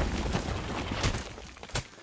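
Rocks crash and shatter.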